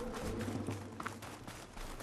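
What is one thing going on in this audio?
Dry bushes rustle as something pushes through them.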